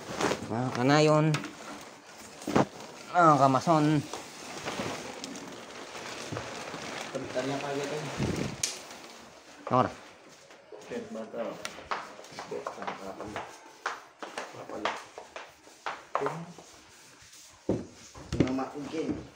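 Wooden boards knock and scrape as they are moved.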